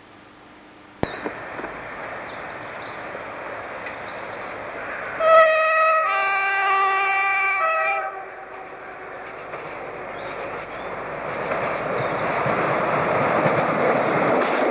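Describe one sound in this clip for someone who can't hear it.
A diesel multiple unit approaches along the track.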